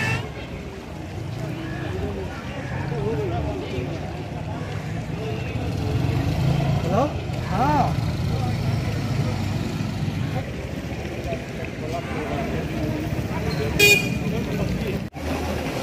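Muddy floodwater rushes and roars steadily.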